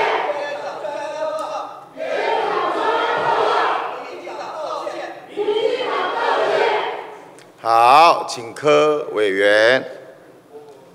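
A middle-aged man speaks firmly through a microphone in a large, echoing hall.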